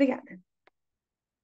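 A young woman speaks briefly through an online call.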